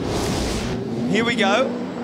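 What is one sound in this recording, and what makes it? Race car engines roar past, revving up and down.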